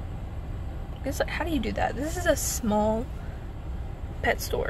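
A young woman speaks close by, calmly and thoughtfully.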